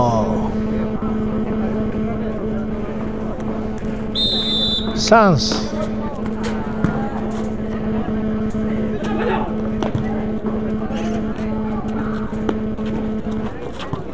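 A basketball bounces on concrete.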